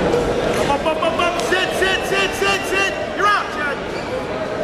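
Wrestling shoes squeak sharply on a mat.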